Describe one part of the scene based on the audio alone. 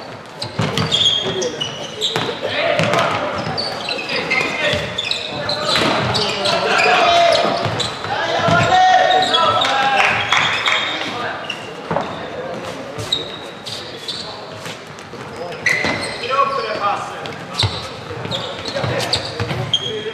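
Players shout and call out to each other across an echoing hall.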